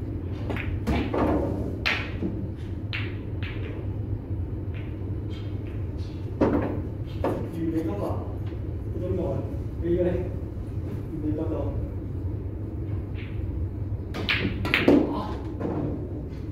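Billiard balls clack together and knock against the cushions.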